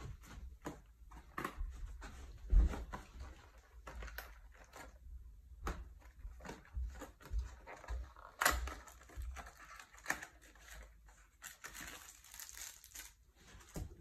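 Plastic packaging rustles and crinkles as it is handled.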